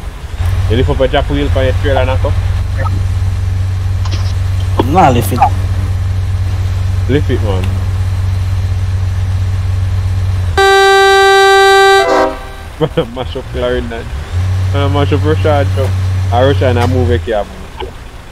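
A truck engine rumbles with a low steady hum.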